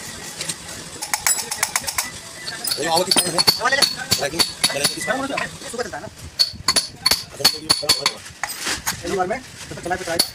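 A hammer strikes metal in quick sharp blows.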